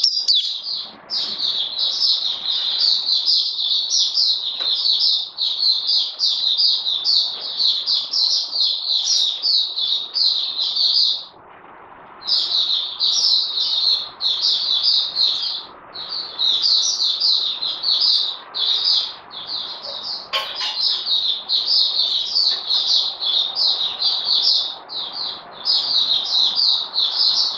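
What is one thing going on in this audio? A small songbird sings a rapid, high twittering song close by.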